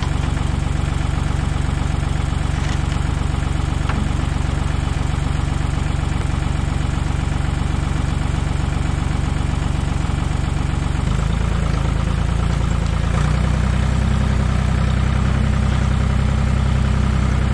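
A small petrol engine runs steadily.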